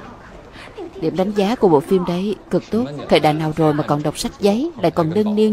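A young man speaks in a teasing tone.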